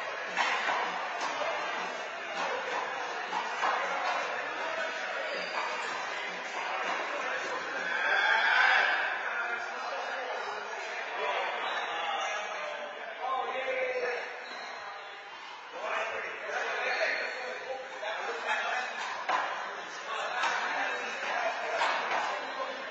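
Men talk with each other in an echoing court.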